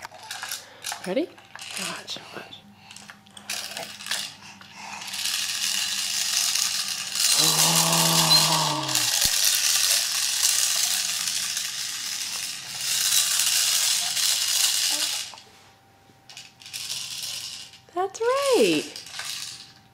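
A baby babbles and squeals nearby.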